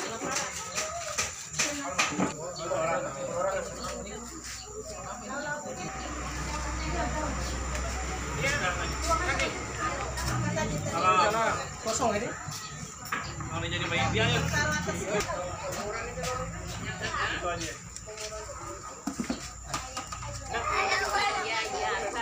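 Several adults chat nearby.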